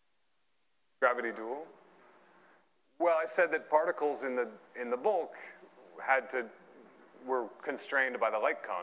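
A man lectures calmly through a microphone in a large hall.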